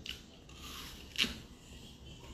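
A young woman bites into an apple with a crisp crunch.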